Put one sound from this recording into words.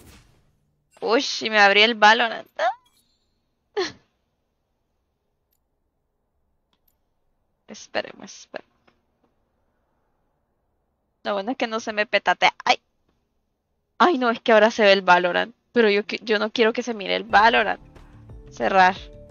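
A young woman talks with animation into a close microphone, in bursts with pauses.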